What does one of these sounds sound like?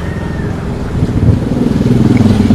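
A second motorcycle approaches and passes.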